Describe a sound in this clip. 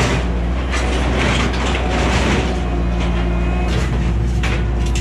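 A skid steer loader's diesel engine runs loudly and steadily.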